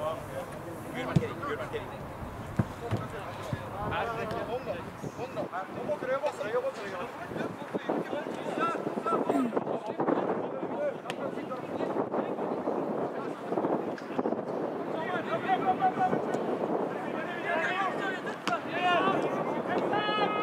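Young players shout and call out to each other across an open field.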